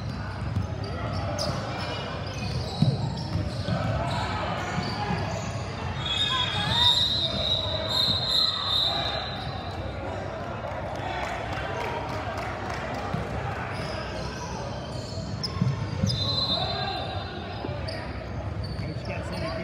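Young girls shout and call out during play.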